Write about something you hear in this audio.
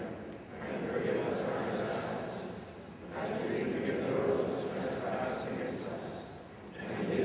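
A congregation sings together in a large echoing hall.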